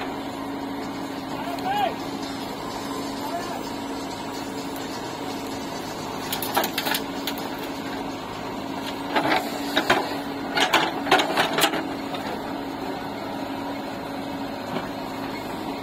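A diesel engine hums steadily close by.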